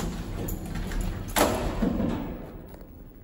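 Metal lift doors slide shut with a thud.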